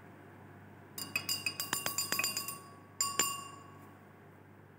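A glass rod clinks rapidly against the inside of a glass beaker.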